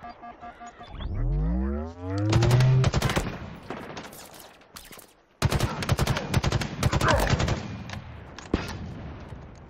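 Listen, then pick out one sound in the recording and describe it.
Rapid gunfire bursts and crackles.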